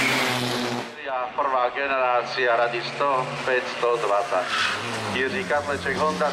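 A rally car exhaust crackles and pops as the engine slows.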